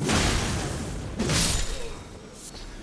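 A blade whooshes through the air and strikes.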